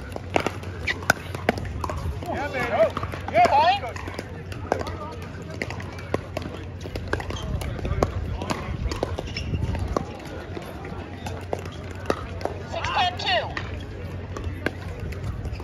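Paddles hit a plastic ball with sharp pops.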